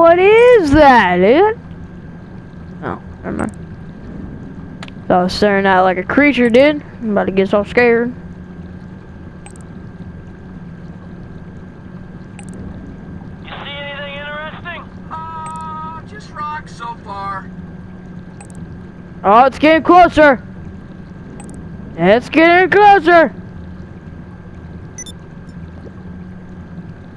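A submarine's motor hums steadily underwater.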